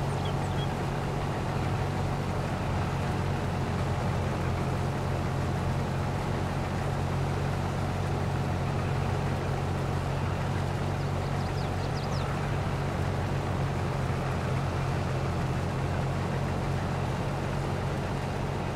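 Grain pours with a rushing hiss into a trailer.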